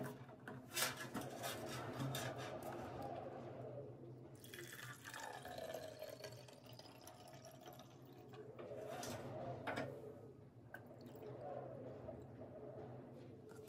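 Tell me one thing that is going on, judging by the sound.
Liquid pours and splashes into a plastic jug.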